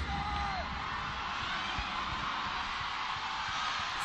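A volleyball is bounced on the court floor.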